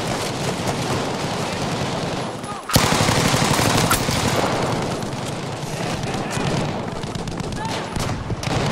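Gunfire and explosions crackle and rumble all around.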